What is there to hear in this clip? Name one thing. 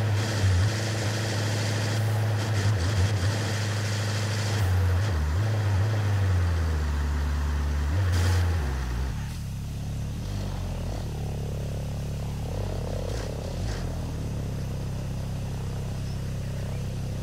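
Tyres hum on a wet road.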